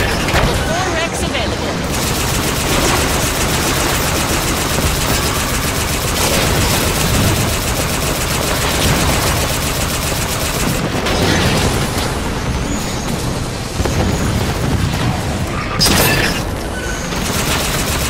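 A hovering vehicle's engine hums steadily.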